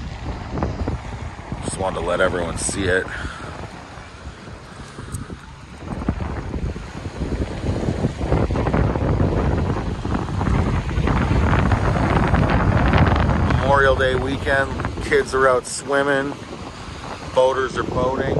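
Small waves lap and splash against a pebbly shore.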